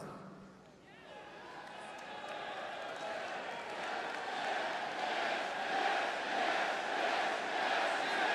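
A large crowd murmurs and cheers.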